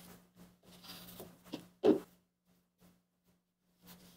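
A marker squeaks as it draws on a metal sheet.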